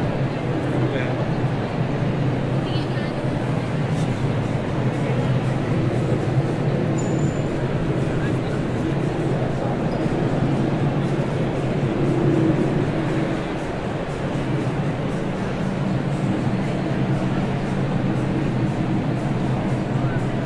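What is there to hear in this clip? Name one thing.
A crowd of people chatters in a large indoor hall.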